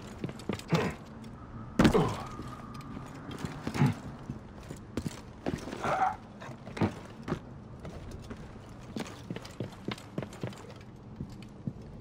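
Footsteps knock and thud on wooden planks and rock.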